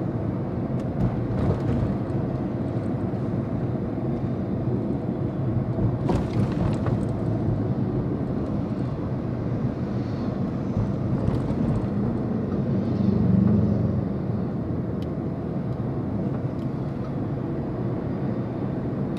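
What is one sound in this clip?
A car engine hums steadily from inside as the car drives along.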